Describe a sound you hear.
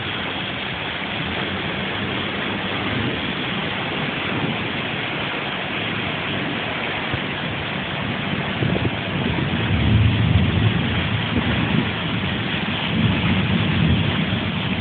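Steady rain patters on hard ground outdoors.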